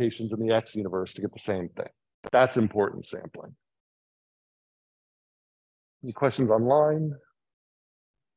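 A man lectures calmly through a microphone.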